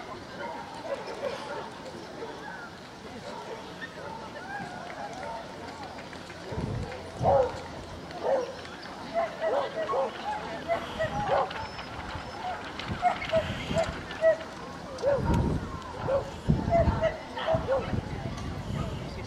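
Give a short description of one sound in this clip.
Men and women chat at a distance outdoors.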